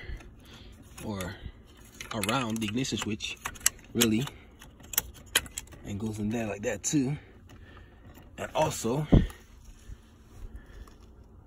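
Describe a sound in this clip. Plastic connectors click and rattle as wires are handled close by.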